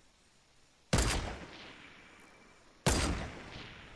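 A sniper rifle fires loud shots that echo away.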